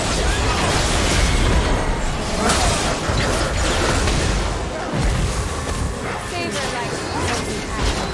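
Magic spells blast and crackle in a battle.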